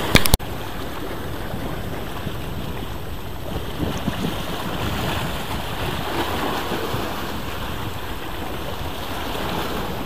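Small waves lap against rocks at the shore.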